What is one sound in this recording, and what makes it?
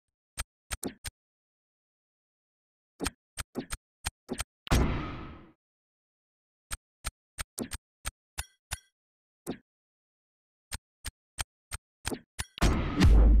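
Game menu clicks tick sharply, one after another.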